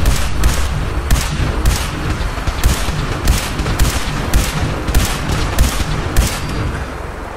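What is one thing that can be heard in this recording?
Laser rifle shots fire in rapid bursts.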